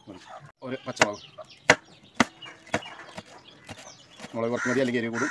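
A knife chops on a wooden cutting board.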